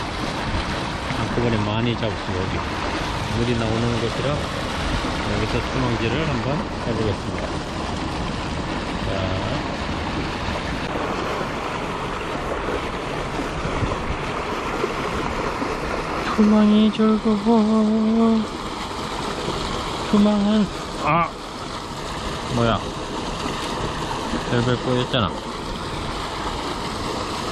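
Water rushes and churns steadily close by.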